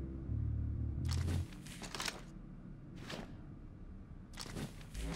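Banknotes rustle as they are stuffed into a bag.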